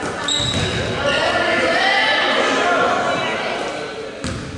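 People on the sidelines shout and call out.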